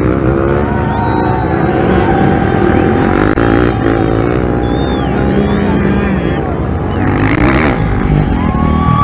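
Dirt bike engines roar and rev loudly nearby.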